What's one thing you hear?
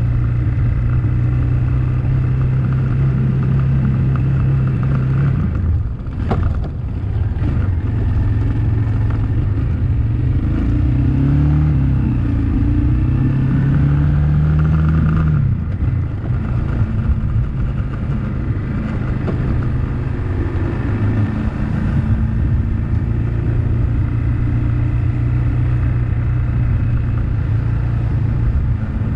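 A motorbike engine hums steadily close by, rising and falling in pitch with the speed.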